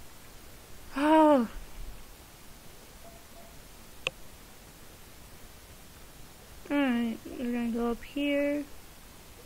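A cat meows several times.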